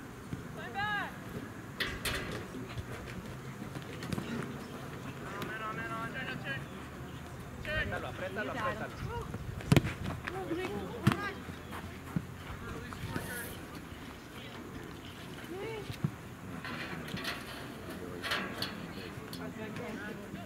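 Outdoors, young players shout to each other across a field.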